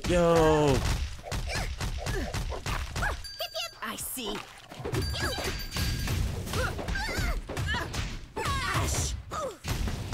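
Punches and blasts from a fighting game crack in quick bursts.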